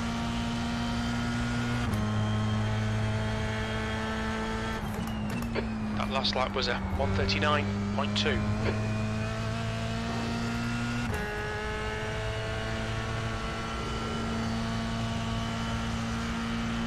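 A racing car engine hums steadily at high revs.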